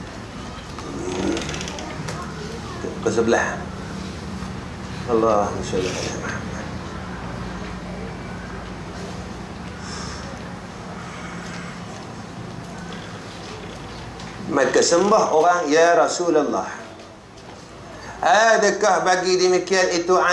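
A middle-aged man speaks calmly into a microphone, pausing often.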